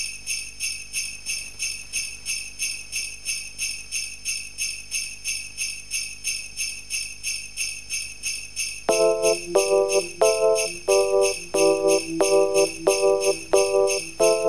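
Dance music with a fast, steady beat plays loudly through speakers.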